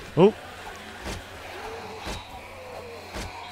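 An axe thuds into a body with dull blows.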